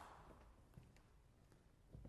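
Footsteps cross a wooden stage.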